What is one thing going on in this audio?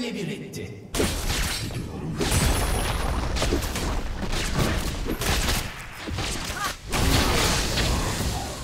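Game spell effects burst and clash in a fight.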